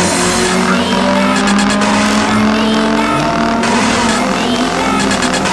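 A car engine roars loudly as a race car speeds away.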